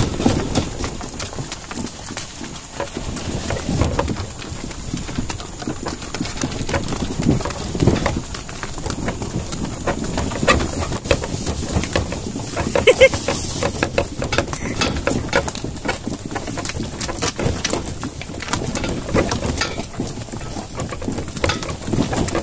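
A cart's wooden wheels rattle and creak over a bumpy dirt track.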